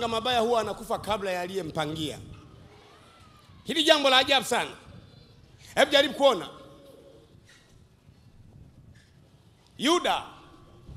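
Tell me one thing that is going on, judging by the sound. A man preaches with passion into a microphone, in loud bursts with pauses, heard through a loudspeaker.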